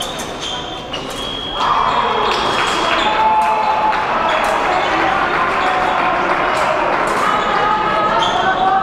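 Fencers' feet tap and squeak quickly on a hard floor in a large echoing hall.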